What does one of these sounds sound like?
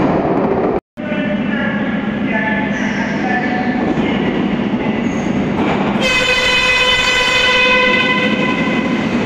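A subway train approaches with a growing rumble.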